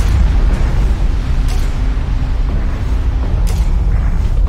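Tank engines rumble low and steady.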